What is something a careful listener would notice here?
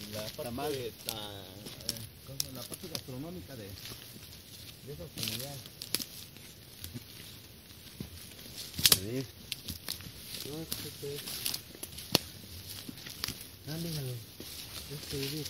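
Footsteps crunch through dry twigs and undergrowth.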